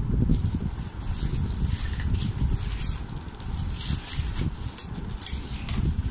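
Tissue paper rustles and crumples.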